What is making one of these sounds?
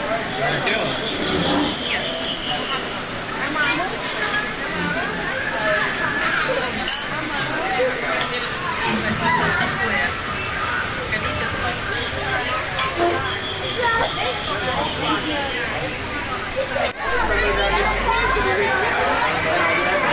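Young children chatter and squeal excitedly.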